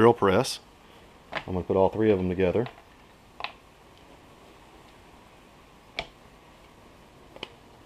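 Metal tools knock lightly against a wooden board.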